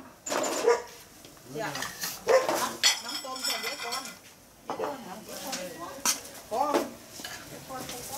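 Ceramic bowls clink as they are set down on a hard floor.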